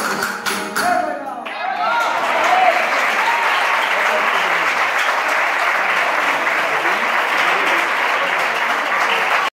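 A group of men and women sing together loudly in an echoing hall.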